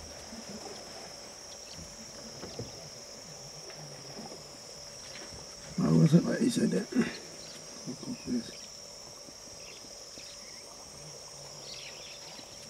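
Elephants wade through thick floating plants, rustling and sloshing.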